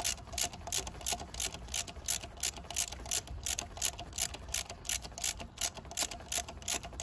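A ratchet wrench clicks rapidly as it is turned back and forth.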